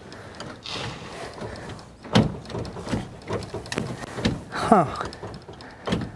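Hands knock and rattle against a car's steering wheel and dashboard.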